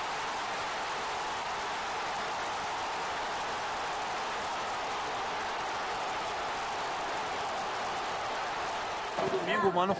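A huge stadium crowd roars and cheers steadily.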